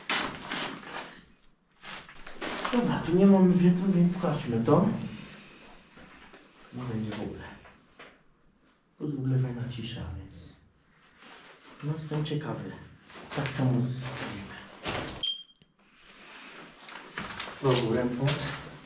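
Paper rustles and crunches underfoot.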